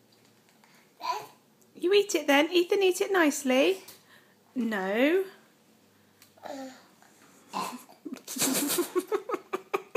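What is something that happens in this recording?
A baby squeals and laughs loudly, close by.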